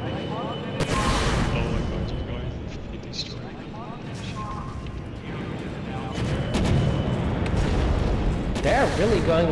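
A shell explodes with a blast.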